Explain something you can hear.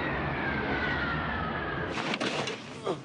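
A jet engine roars outside an airliner.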